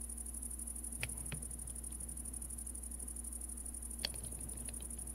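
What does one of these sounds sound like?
Soft clicks sound as items are moved in a game menu.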